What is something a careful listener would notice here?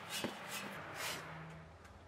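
Sand pours and patters onto a loose floor.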